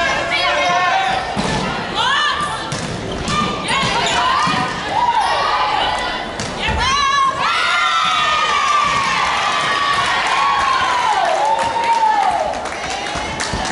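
Young women shout and call out to each other in a large echoing hall.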